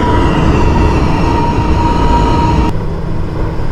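A high motor whine sounds from a subway train and then stops abruptly.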